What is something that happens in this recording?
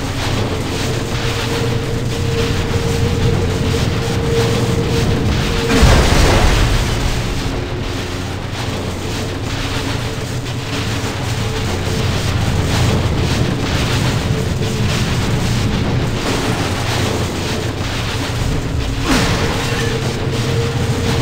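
A lightsaber hums and swooshes with each swing.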